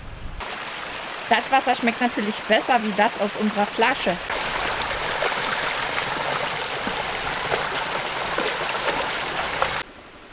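A dog splashes through shallow water.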